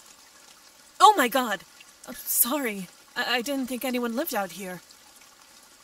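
A young woman speaks with surprise, close by.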